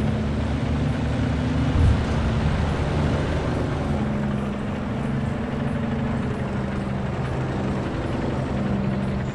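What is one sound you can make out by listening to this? A tank's engine rumbles and roars steadily.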